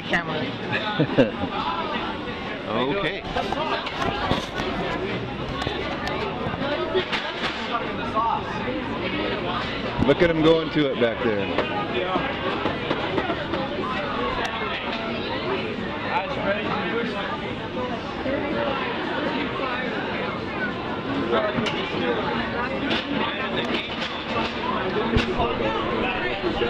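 A crowd chatters throughout in an echoing indoor hall.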